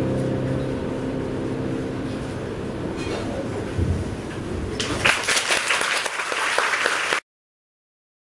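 A keyboard plays sustained electronic tones, growing noisy and harsh before cutting off abruptly.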